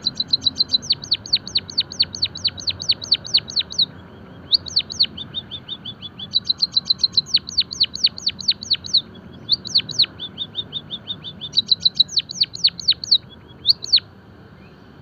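A white-headed munia sings bursts of rapid, high chirps.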